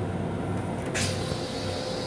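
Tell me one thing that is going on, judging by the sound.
A flush button clicks.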